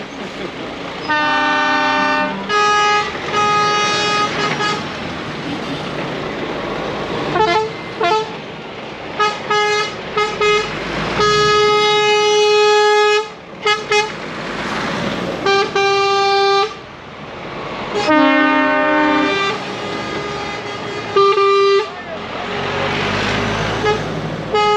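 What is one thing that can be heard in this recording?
Heavy truck engines rumble past close by.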